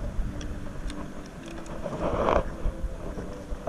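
Pieces of dry driftwood knock and rattle together in a hand.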